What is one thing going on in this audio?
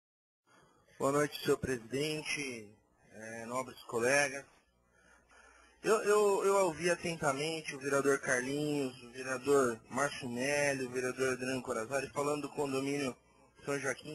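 A man speaks formally into a microphone.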